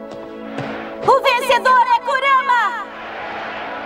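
A young woman shouts excitedly into a microphone, heard through loudspeakers in a large arena.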